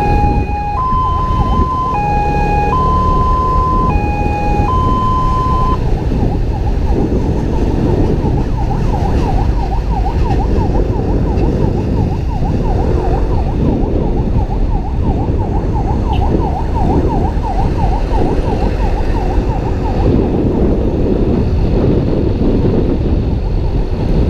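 A motor scooter engine hums steadily on the move.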